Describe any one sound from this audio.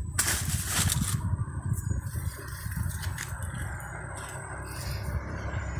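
A man scrapes and digs in dry soil and leaves with a stick.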